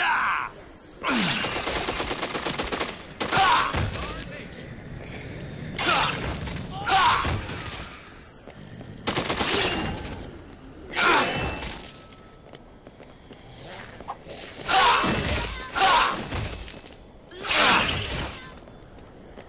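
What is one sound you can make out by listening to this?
A blade slashes wetly into flesh again and again.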